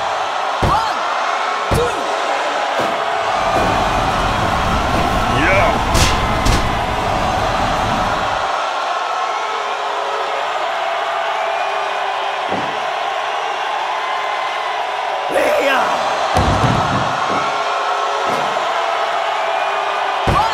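A large crowd roars and cheers throughout in a big echoing arena.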